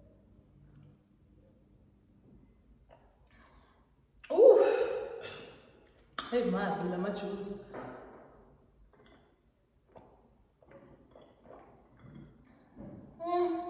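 A young woman gulps a drink.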